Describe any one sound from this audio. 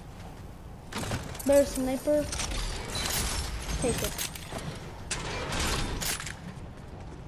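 Game chests unlock and burst open with bright chiming effects.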